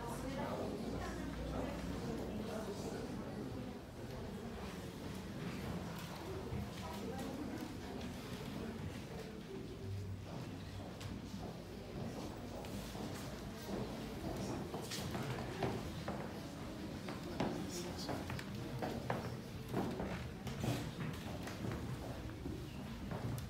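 Men and women murmur quietly in the distance, in a room with a slight echo.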